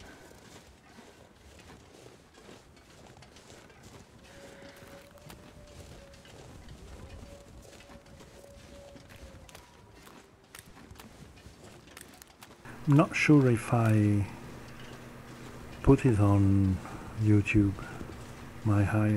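Footsteps crunch slowly on snow.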